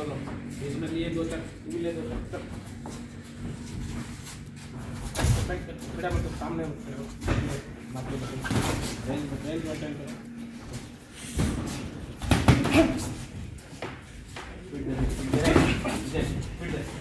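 A man speaks, giving instructions.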